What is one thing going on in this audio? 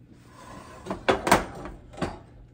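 A heavy iron pan clanks on a stove grate.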